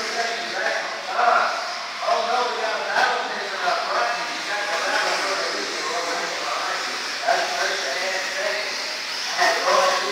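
Small electric model cars whine as they race around a track.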